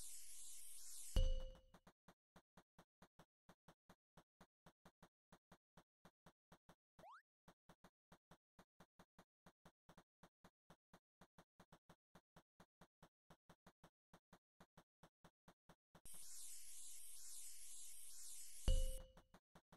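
A spray bottle hisses steadily.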